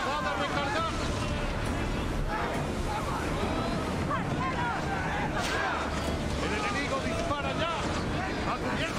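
Waves wash steadily against a wooden ship's hull.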